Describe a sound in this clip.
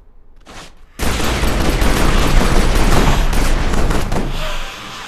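Gunshots blast in a loud, rapid burst.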